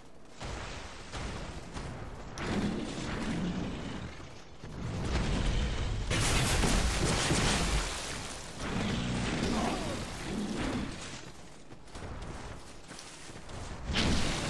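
A large beast growls and roars nearby.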